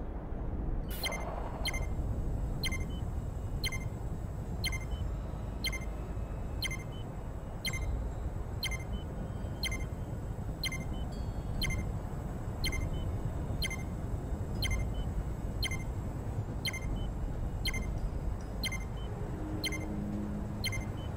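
A countdown timer ticks with short, sharp clicks at a steady pace.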